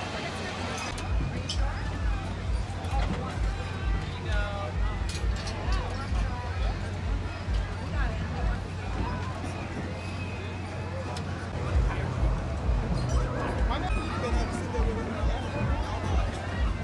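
A fairground ride's motor thumps with a steady rhythm.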